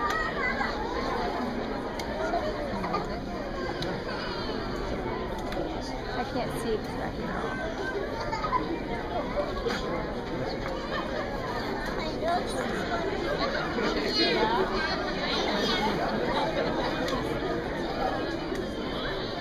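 An audience murmurs and talks nearby.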